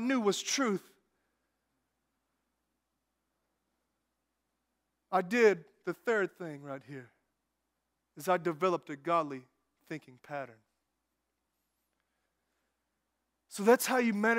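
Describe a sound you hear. A man speaks through a microphone in a large room, in short bursts with pauses.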